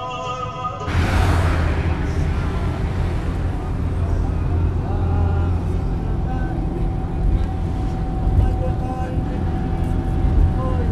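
A car engine rumbles steadily inside a moving car.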